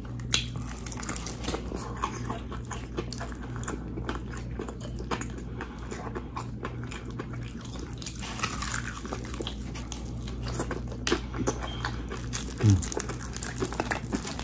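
A man chews and crunches food loudly close to a microphone.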